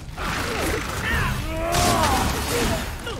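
A winged creature screeches shrilly.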